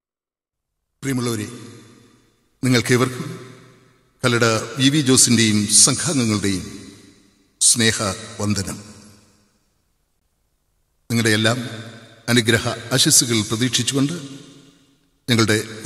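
A harmonium plays.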